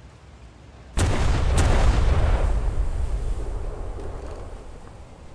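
Large naval guns fire with heavy booms, and the blasts rumble and fade.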